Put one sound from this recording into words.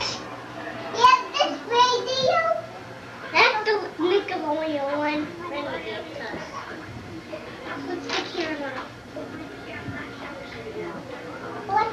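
A young child speaks and squeals excitedly close by.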